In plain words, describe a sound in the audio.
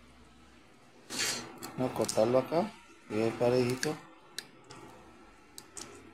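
Metal pliers click and clink in a hand.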